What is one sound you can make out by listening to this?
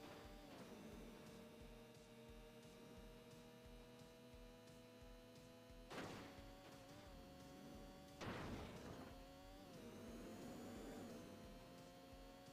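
A sport motorcycle engine drones at high revs.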